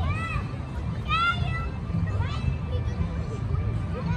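Young children chatter nearby outdoors.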